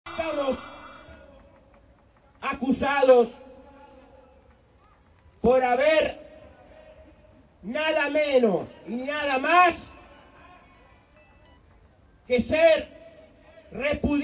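An elderly man speaks forcefully in bursts into a microphone, heard through loudspeakers outdoors with echo.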